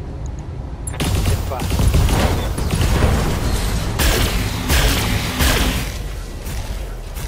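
Laser weapons fire in loud, crackling bursts.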